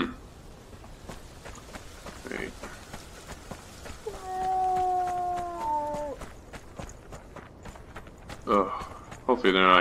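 Footsteps crunch steadily over the ground.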